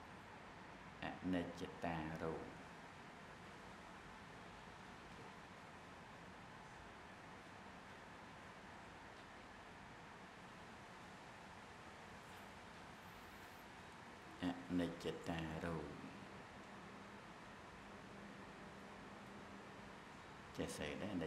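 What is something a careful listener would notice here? A middle-aged man speaks slowly and calmly into a close microphone, in short phrases with long pauses.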